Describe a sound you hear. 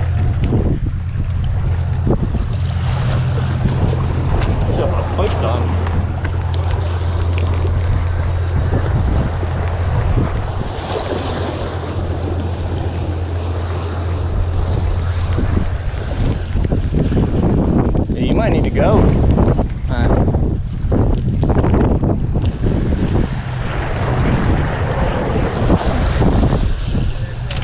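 Wind blows roughly across a microphone outdoors.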